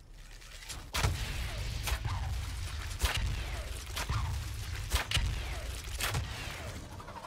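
A magic staff fires sharp blasts again and again, each one crackling briefly.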